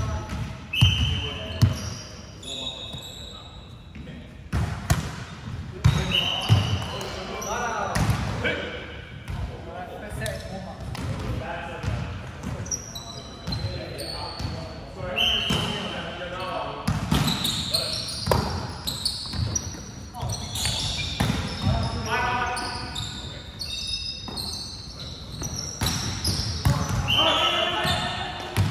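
A volleyball is struck with sharp slaps that echo around a large hall.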